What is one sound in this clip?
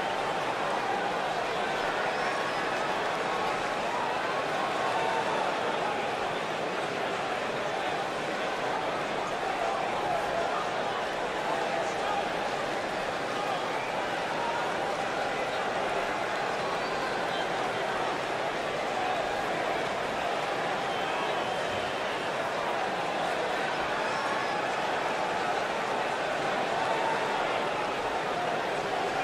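A large crowd cheers and chants steadily in a big echoing arena.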